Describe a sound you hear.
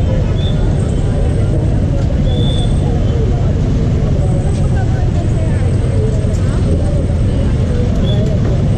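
A crowd chatters all around outdoors on a busy street.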